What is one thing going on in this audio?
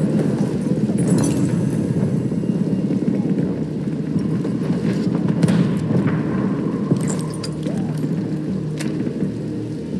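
Metal gear clicks and rattles as a gun is handled.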